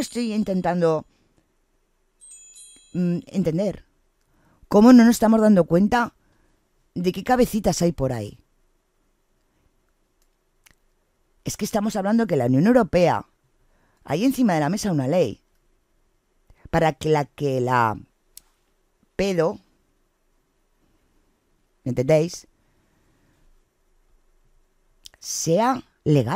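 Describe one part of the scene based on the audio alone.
A middle-aged woman talks with animation close to a microphone, in short bursts with pauses.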